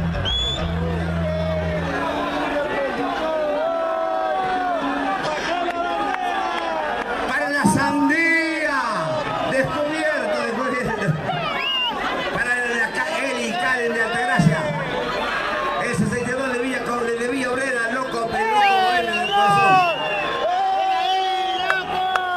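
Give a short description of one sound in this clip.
A man sings through loudspeakers.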